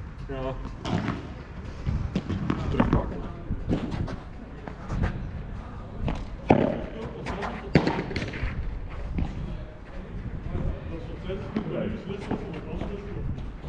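Padel rackets strike a ball with sharp pops.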